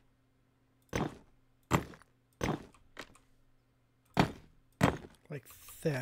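Blocks knock softly into place one after another.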